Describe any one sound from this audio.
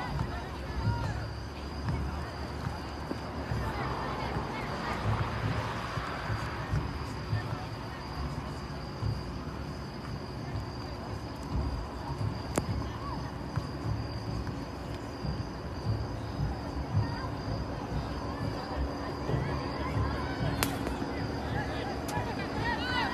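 Young women shout to each other across an open field in the distance.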